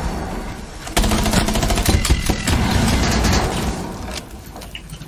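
A stun grenade goes off with a loud bang.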